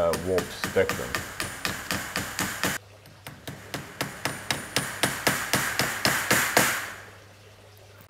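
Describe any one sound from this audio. A hammer taps repeatedly on metal.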